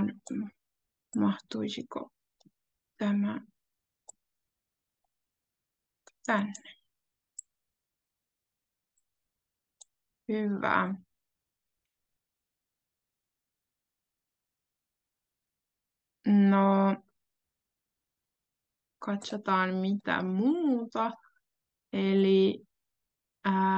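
A young woman speaks calmly in short phrases over an online call.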